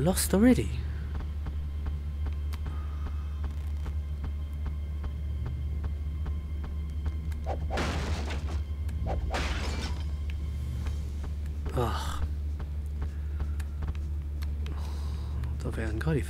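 Footsteps run quickly over hard stone ground.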